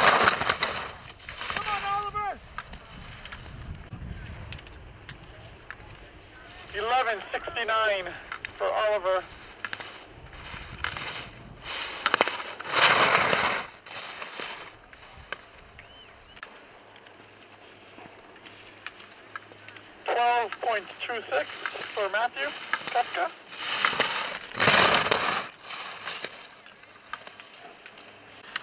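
Skis scrape and hiss over hard snow in quick turns.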